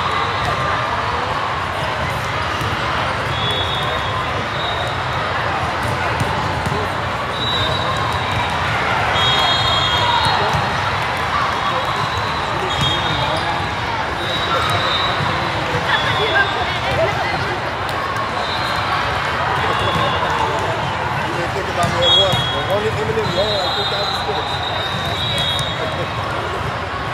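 A crowd chatters and murmurs throughout a large echoing hall.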